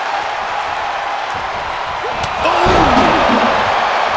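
A wrestler slams an opponent onto the mat with a heavy thud.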